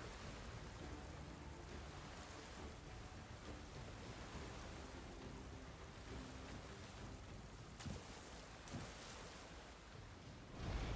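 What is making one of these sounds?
Water rushes and splashes steadily.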